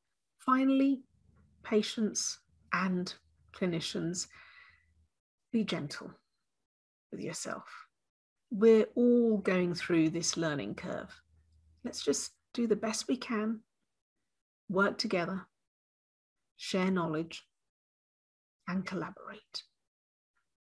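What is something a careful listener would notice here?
A woman speaks calmly and clearly over an online call, with pauses.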